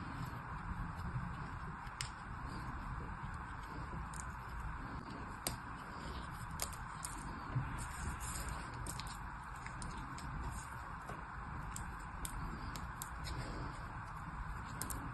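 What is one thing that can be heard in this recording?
Fingers squeeze and crumble soft sand, with light crackles.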